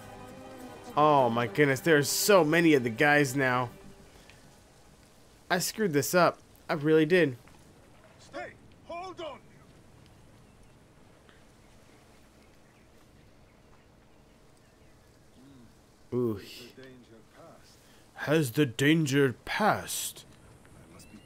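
A man talks with animation, close to a microphone, in short bursts.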